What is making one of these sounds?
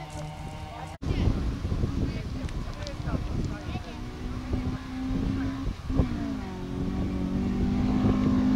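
A rally car's engine revs at full throttle.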